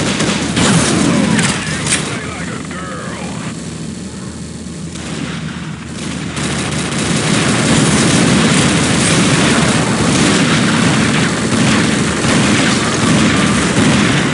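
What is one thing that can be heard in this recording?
Shotgun blasts go off in rapid succession.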